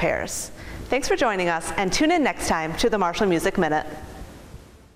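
A young woman speaks cheerfully, close to a microphone.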